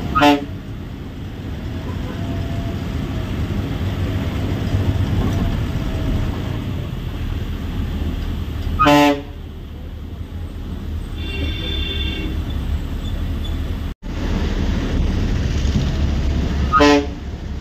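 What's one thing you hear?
A bus horn honks in short loud blasts.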